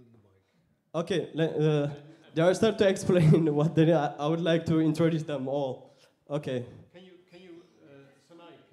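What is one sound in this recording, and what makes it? A man speaks into a microphone, heard over loudspeakers in a hall.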